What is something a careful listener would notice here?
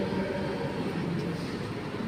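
A spoon scrapes and clinks against a plate.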